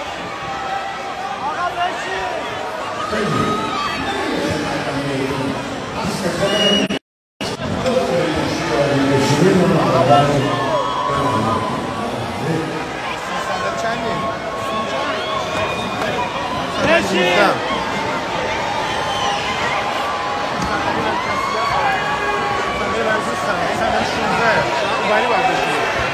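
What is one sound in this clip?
A man sings into a microphone over a loudspeaker in a large hall.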